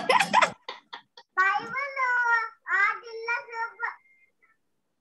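A young boy speaks over an online call.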